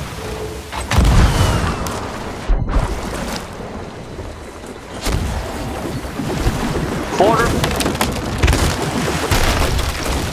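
A cannon fires with a heavy boom.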